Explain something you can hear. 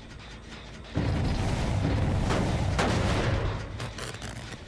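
A heavy engine rattles and clanks as it is struck.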